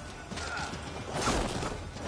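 Metal weapons clash in a fight.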